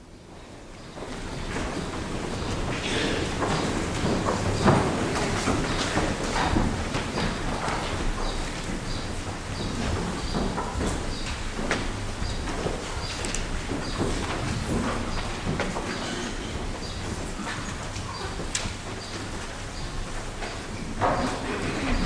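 A man recites prayers in a low voice in a large echoing hall.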